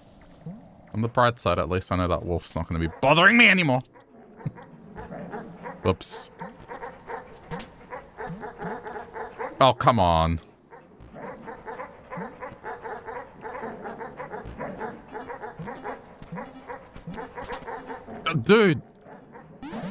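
Ghostly dogs bark loudly in bursts.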